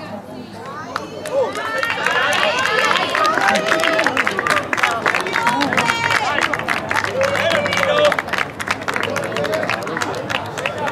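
Spectators close by shout and cheer excitedly, outdoors.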